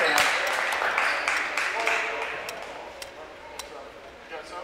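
A crowd claps.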